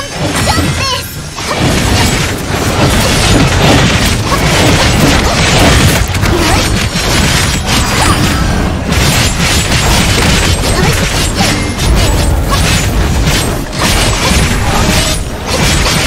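Sword slashes and magic blasts crash in quick bursts.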